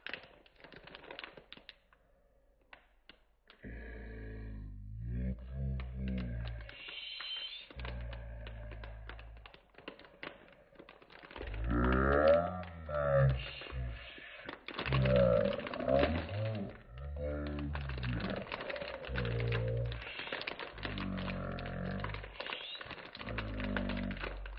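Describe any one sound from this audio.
Plastic wrapping crinkles and rustles under handling fingers.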